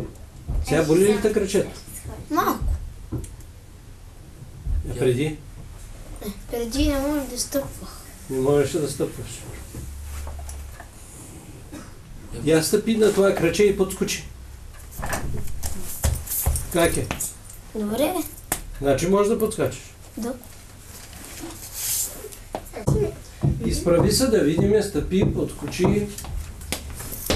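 A boy speaks calmly and hesitantly, close by.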